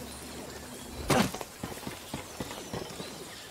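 Boots thud on a metal beam.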